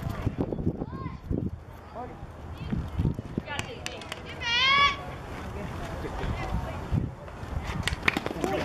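Young girls shout and cheer from across an open field outdoors.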